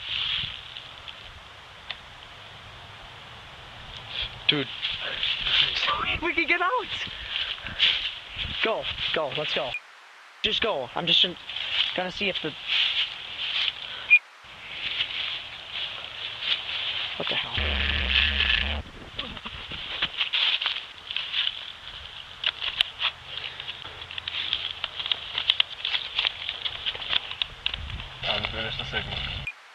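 Leaves and twigs rustle and crunch underfoot.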